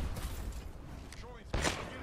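A gun fires a shot at close range.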